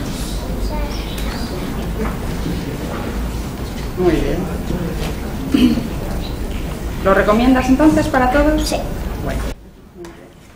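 A woman reads aloud calmly.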